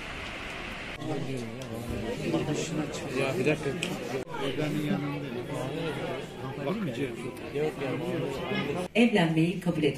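Men and women chat in a crowded hall.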